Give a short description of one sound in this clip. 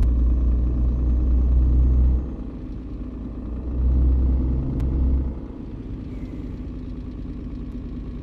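A truck engine hums steadily at low speed, with a deep rumble that swells and eases.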